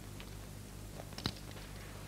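A man laughs quietly.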